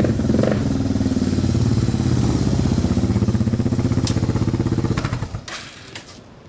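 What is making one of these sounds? A motorcycle engine runs loudly close by, then cuts out.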